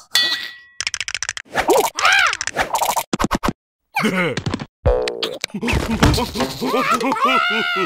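Cartoon creatures laugh loudly in high voices.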